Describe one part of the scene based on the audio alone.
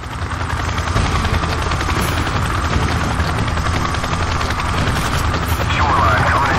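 Helicopter rotors thump loudly and steadily close by.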